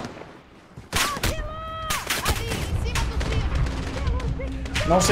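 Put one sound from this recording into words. Gunfire crackles in quick bursts.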